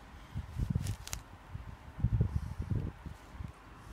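A cat claws and scratches at a rough sack.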